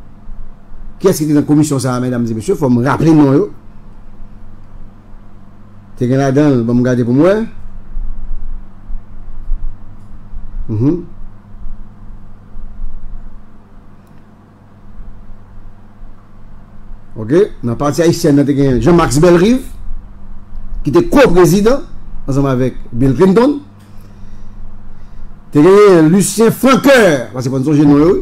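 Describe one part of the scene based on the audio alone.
A middle-aged man speaks with animation into a close microphone, with long pauses.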